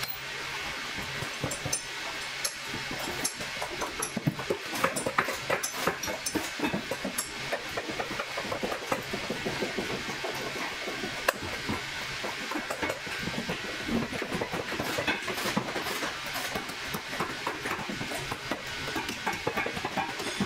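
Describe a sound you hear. A metal tool clicks against a boot.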